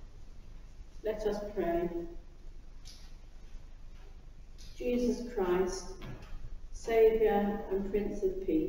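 An elderly woman speaks slowly into a microphone in a large echoing hall.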